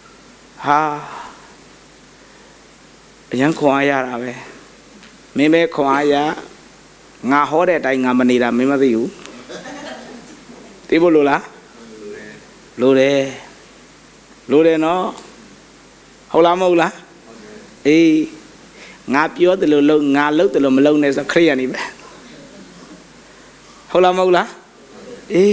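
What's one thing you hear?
A man speaks calmly through a microphone in short phrases with pauses, in a room with some echo.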